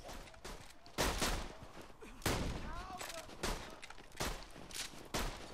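Gunshots fire in sharp, repeated bursts.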